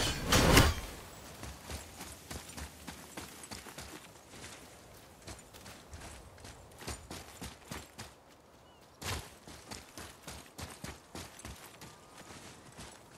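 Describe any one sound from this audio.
Heavy footsteps crunch quickly over rocky ground.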